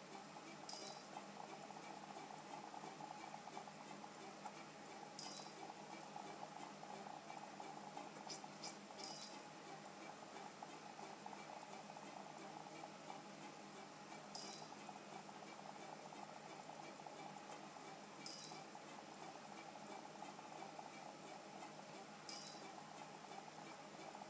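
Game music plays softly from a handheld console's small speaker.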